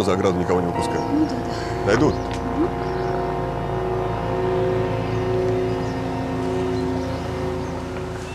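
A motorboat engine drones as the boat speeds across water.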